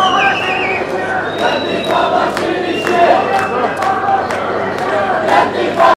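A large crowd chants and shouts loudly outdoors.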